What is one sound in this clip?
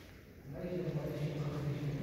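Footsteps echo on a hard floor in a large hall.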